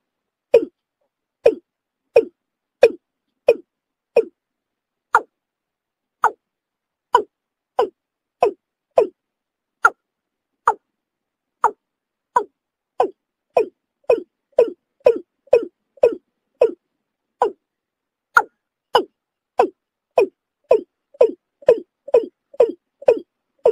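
A bird gives short, sharp calls over and over.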